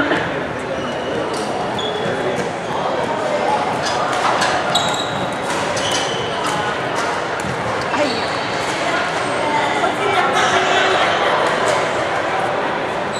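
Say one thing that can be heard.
Young people talk and call out across the hall.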